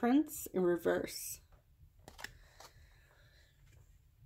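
A playing card is set down softly on a cloth.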